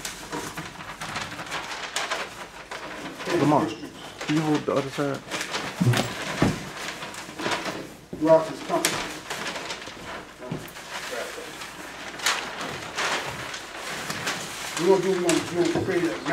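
A large paper map rustles and crinkles as it is unrolled.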